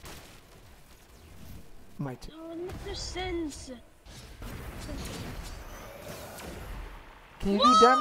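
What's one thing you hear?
Magical energy blasts whoosh and crackle.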